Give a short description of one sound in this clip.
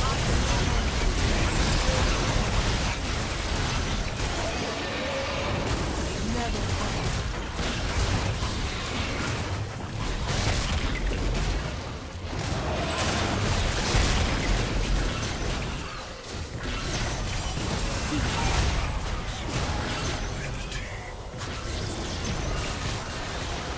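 Game sound effects of spells and attacks crackle and boom.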